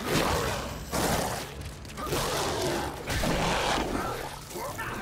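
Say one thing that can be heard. A monster snarls and roars.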